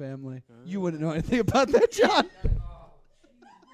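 Young men laugh loudly into microphones.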